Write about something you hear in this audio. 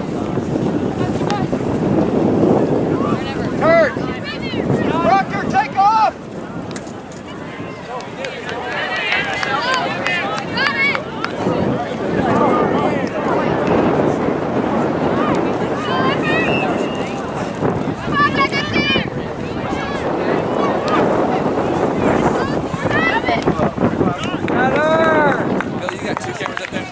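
Spectators, men and women, shout and cheer from the sidelines outdoors.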